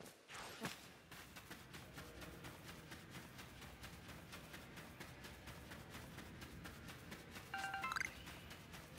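Quick footsteps patter on rocky ground.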